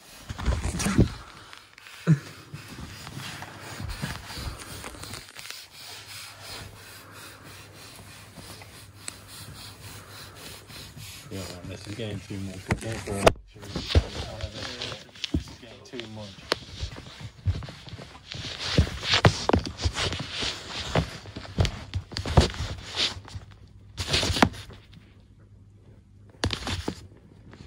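Fabric rustles and scrapes close by.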